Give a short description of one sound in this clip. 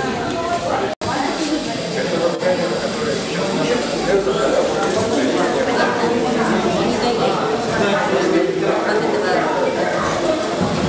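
A small robot whirs as it moves on a table.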